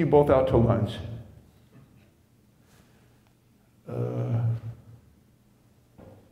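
A middle-aged man speaks with animation through a microphone in a large room.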